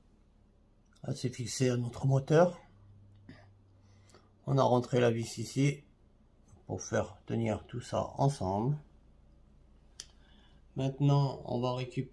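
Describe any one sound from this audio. A man speaks calmly close by, in short bursts.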